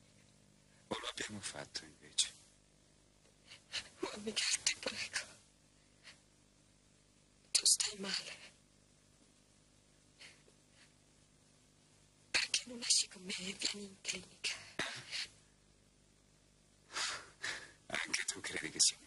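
A woman speaks tearfully and emotionally, close by.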